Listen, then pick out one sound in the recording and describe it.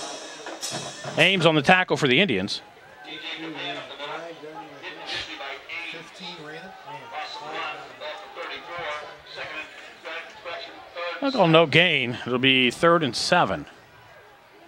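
Players shout and cheer loudly nearby.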